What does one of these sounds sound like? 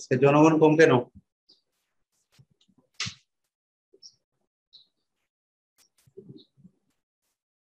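A man speaks calmly close to a microphone, with long pauses.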